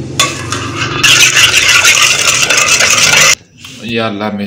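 A spoon stirs liquid briskly in a metal pot.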